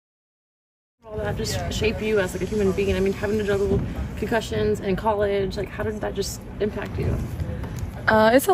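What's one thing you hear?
A young woman speaks calmly into a nearby microphone in a large echoing arena.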